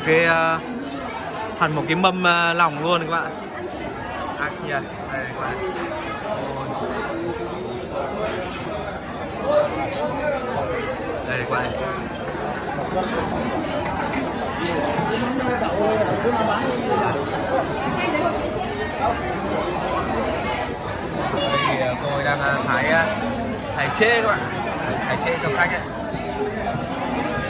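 A crowd of people chatter all around.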